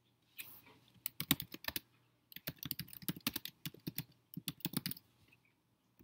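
Keys click rapidly on a keyboard.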